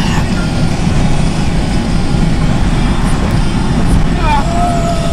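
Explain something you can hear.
A car engine hums steadily, heard from inside the cabin.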